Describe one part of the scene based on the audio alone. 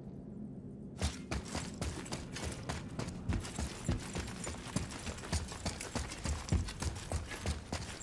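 Heavy footsteps thud quickly on stone.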